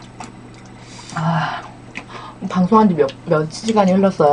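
A woman slurps noodles.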